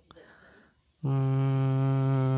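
A phone speaker plays a steady, buzzing tone.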